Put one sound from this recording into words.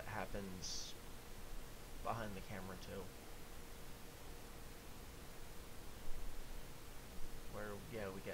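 A young man speaks calmly and close into a microphone, in short bursts.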